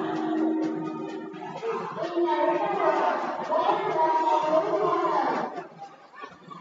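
A crowd cheers and shouts loudly in a large echoing hall.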